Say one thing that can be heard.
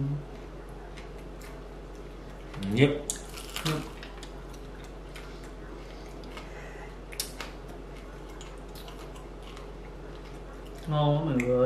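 Two men crack and peel shellfish with small clicks.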